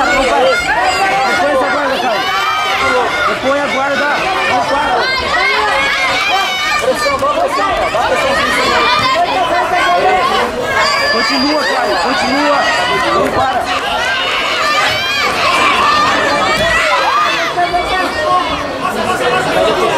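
A crowd of men and women shouts and cheers loudly in a large echoing hall.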